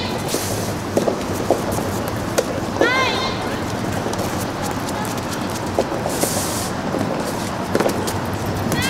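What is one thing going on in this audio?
Rackets strike a soft tennis ball in a rally, with sharp pops.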